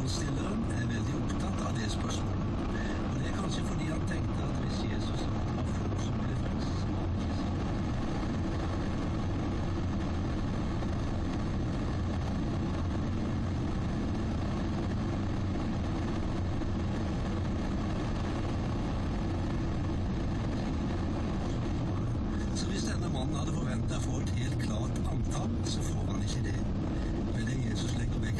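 A vehicle's engine rumbles steadily as it drives along.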